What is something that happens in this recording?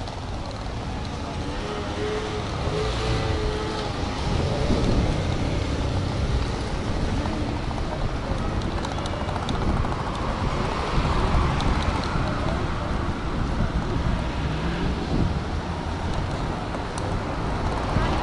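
Suitcase wheels rattle along a pavement.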